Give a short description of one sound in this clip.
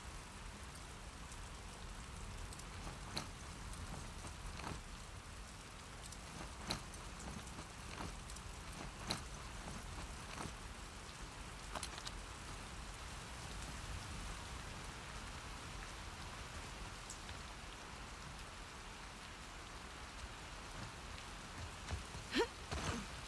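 Slow footsteps tread softly on a floor.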